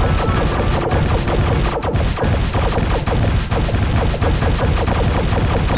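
Cartoon explosions burst repeatedly.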